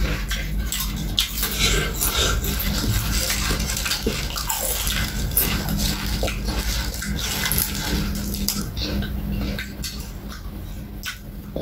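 Crispy snacks crunch loudly in close chewing.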